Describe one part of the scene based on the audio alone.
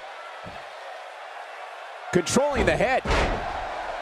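A body slams onto a wrestling mat with a heavy thud.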